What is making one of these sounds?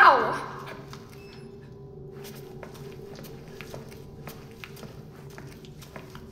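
Footsteps shuffle slowly across a hard floor.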